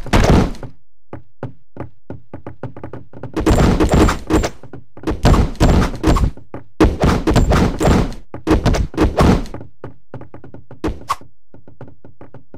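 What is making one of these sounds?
Footsteps tap quickly across a wooden floor.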